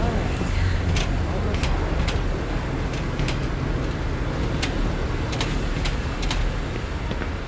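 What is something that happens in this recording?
A man types on a computer keyboard in quick clicks.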